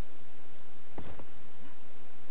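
A heavy stone block thuds into place.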